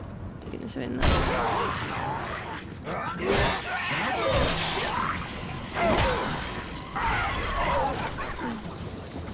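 A creature snarls and growls during a fight.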